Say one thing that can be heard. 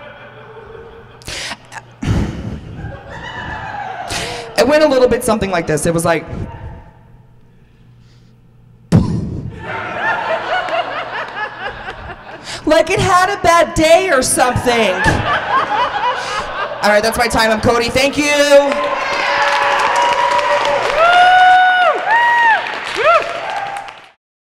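A young man beatboxes and makes vocal sounds into a microphone, heard through loudspeakers.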